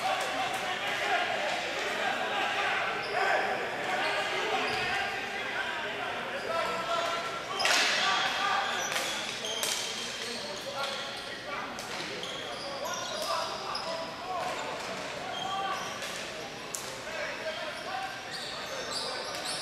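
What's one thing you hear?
A crowd of spectators chatters and calls out in a large echoing arena.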